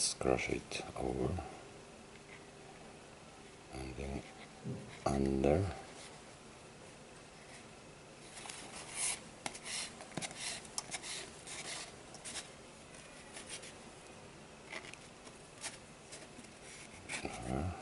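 Thin cord rubs and scrapes softly against a cardboard tube.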